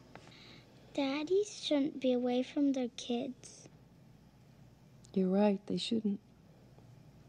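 A young girl speaks quietly close by.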